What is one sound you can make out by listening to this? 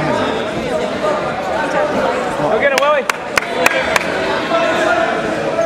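A crowd of young people chatters in a large echoing gym.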